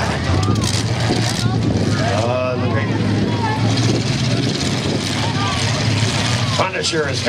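Truck engines rumble and rev across an open track.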